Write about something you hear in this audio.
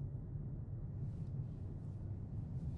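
Another car passes by with a brief whoosh.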